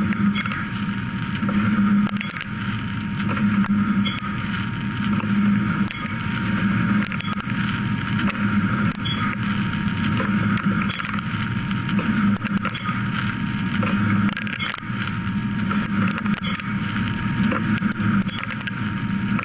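Metal chips rattle and patter inside a machine enclosure.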